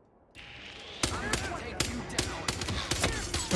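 Gunshots ring out in rapid bursts in a large echoing hall.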